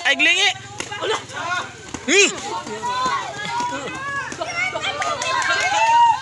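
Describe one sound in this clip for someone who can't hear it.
A crowd of children shouts and cheers excitedly close by.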